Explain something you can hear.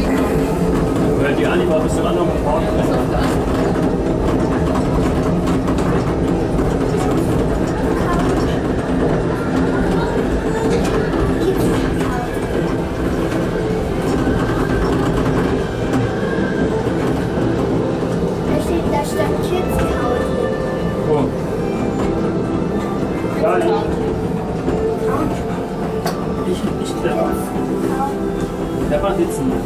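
A ride vehicle rumbles and rattles steadily along a track.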